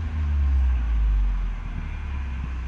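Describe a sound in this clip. A car engine revs up briefly and then settles.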